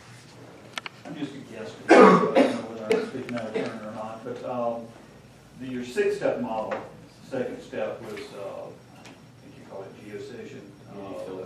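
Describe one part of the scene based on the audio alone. A man speaks calmly to a room.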